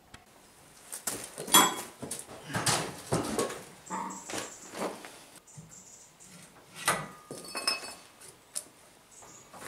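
Metal bars clank and rattle as a frame is handled.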